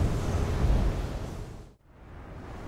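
Flames burst and roar loudly.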